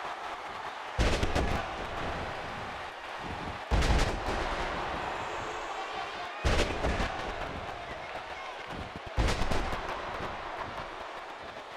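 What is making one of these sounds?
An arena crowd roars and cheers.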